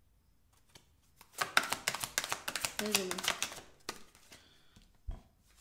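Cards shuffle and rustle in a young woman's hands.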